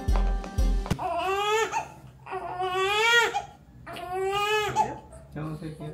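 A baby cries loudly in long wails.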